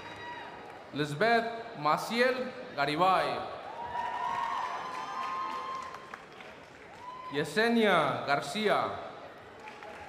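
A crowd cheers and whoops loudly in a large echoing hall.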